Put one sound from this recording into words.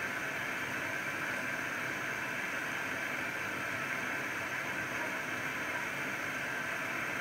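A washing machine hums steadily as its drum turns.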